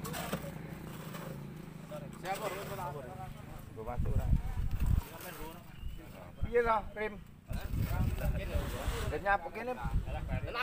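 Men talk with animation nearby outdoors.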